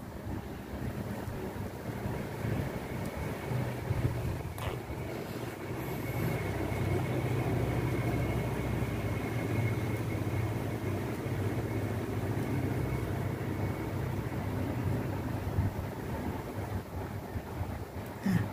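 Yarn rustles softly as hands crochet and stitch.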